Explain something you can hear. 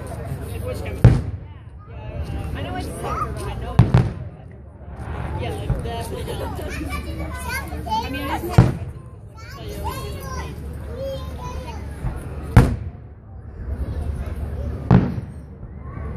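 Fireworks burst with loud booms outdoors.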